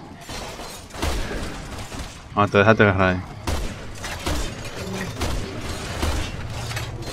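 Gunshots bang sharply several times.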